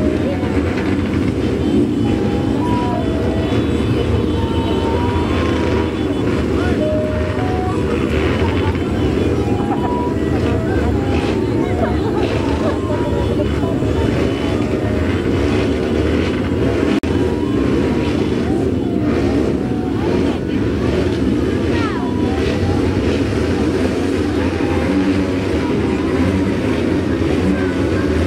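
Many motorcycle engines idle and rev loudly outdoors.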